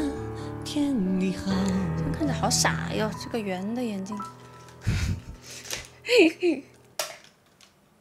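A young woman sings close into a microphone.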